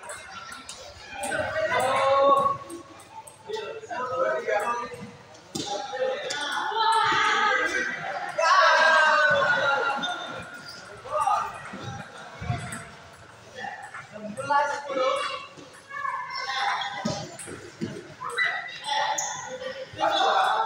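Men talk and call out in an echoing hall.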